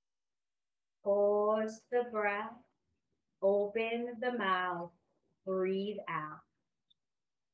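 A woman speaks calmly and slowly in short phrases, close to a microphone.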